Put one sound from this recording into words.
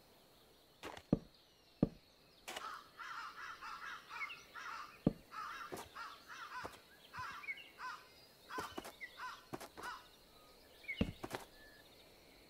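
Wooden blocks are set down with short knocks.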